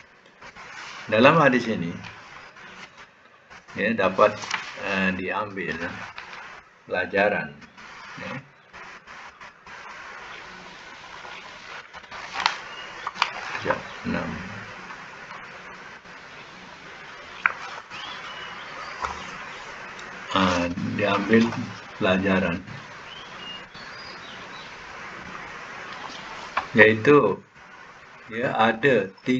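A woman speaks through an online call, in short bursts with pauses.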